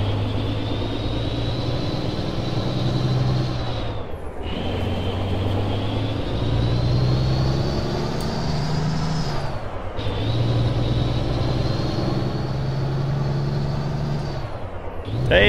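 A truck's diesel engine drones and revs up steadily, dropping briefly with each gear change.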